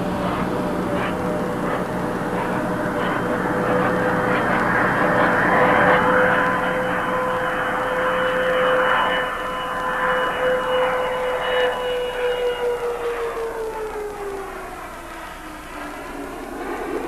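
A spacecraft rolls down a runway with a high whine that holds steady, then drops in pitch and fades.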